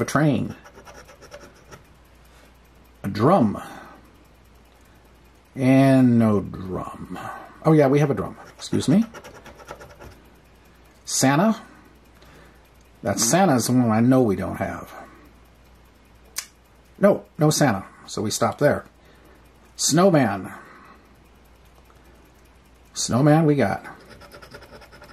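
A coin scrapes across a scratch card.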